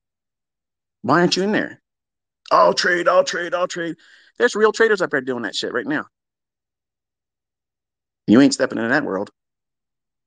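A man speaks calmly close to a microphone, in short phrases with pauses.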